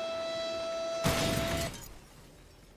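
A helicopter crashes into a tower with a loud bang.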